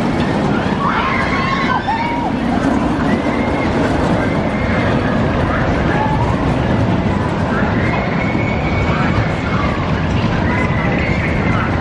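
A roller coaster train rumbles loudly along its track.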